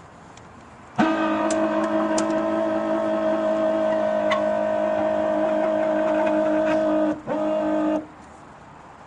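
A car's warning chime sounds in a steady tone.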